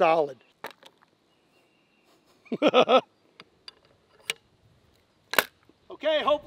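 A shotgun's action clicks and snaps shut as a shell is loaded.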